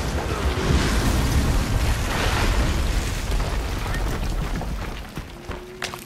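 Water rushes and bubbles loudly, then drains away.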